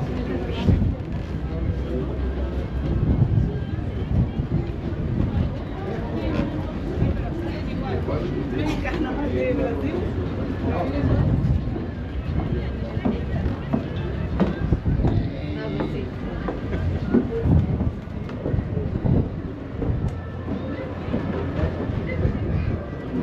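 Footsteps thud on a wooden walkway as people walk past.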